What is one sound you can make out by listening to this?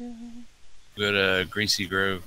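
A young man talks animatedly into a microphone.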